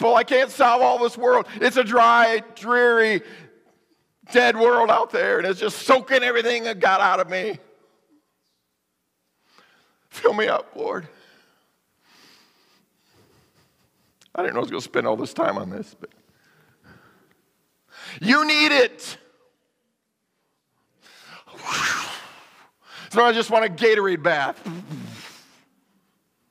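A man preaches with animation through a microphone in a large echoing hall, pausing between phrases.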